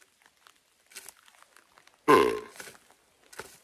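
A man blows a game call, making a loud, short, low bellowing grunt.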